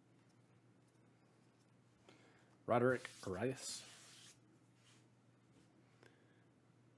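Trading cards rustle and slide softly as hands shuffle through them.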